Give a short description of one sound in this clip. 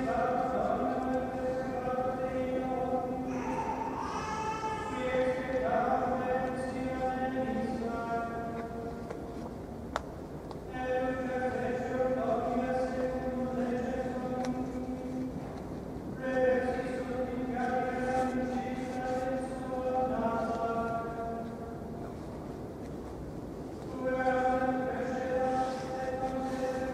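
A man chants slowly in a large echoing hall.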